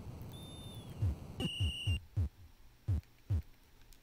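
Low electronic thuds from a retro video game sound in quick bursts.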